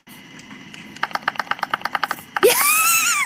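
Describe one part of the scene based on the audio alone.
Short electronic beeps repeat rapidly.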